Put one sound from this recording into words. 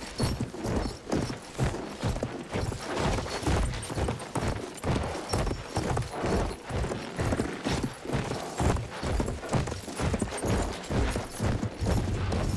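Horse hooves gallop quickly on a dirt road.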